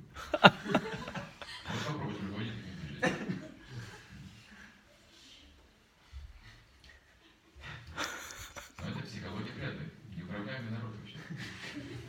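An elderly man speaks calmly into a microphone, heard close.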